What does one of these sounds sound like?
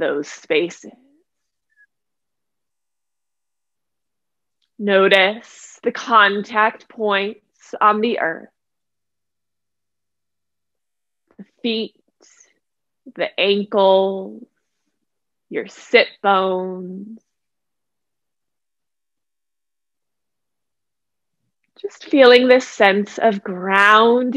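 A woman speaks calmly and softly close to a microphone, with long pauses.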